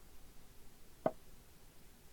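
A chess piece clicks sharply onto a board.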